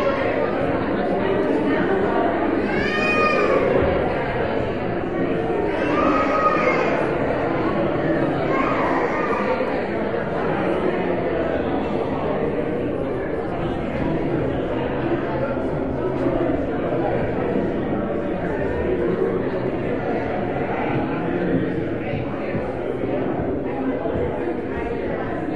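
A crowd of men and women chatter and murmur in a large echoing hall.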